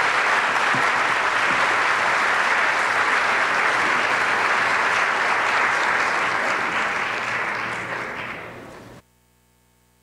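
A crowd applauds loudly in a large echoing hall, then the clapping fades.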